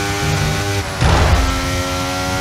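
A racing car engine shifts gear with a brief rough burst and a drop in pitch.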